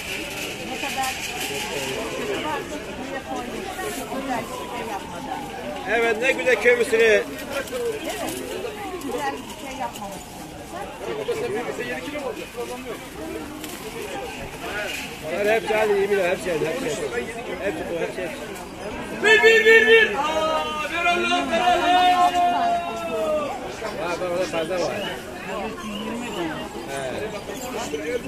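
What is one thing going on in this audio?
Husks rustle as corn is peeled.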